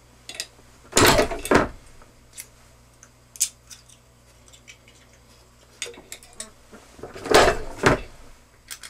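An arbor press lever pulls down with a loud metallic clunk.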